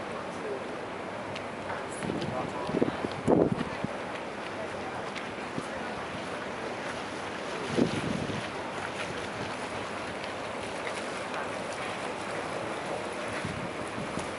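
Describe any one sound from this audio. Water laps gently against a quay outdoors.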